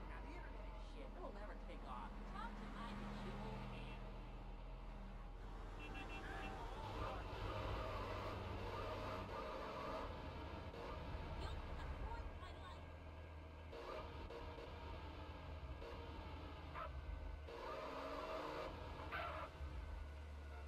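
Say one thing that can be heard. Tyres screech as a car skids sideways.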